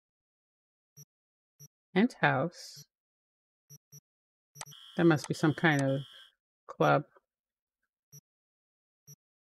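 Short soft electronic blips sound as a menu cursor moves between points.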